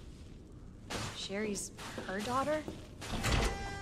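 A young woman speaks in a puzzled voice.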